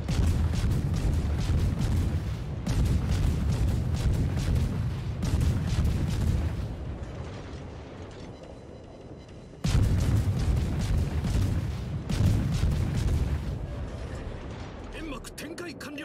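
Heavy naval guns boom in rapid volleys.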